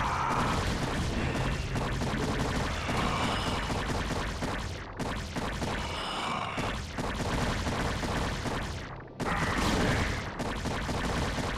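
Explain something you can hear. Game battle sounds of rapid weapon fire and hits clatter on.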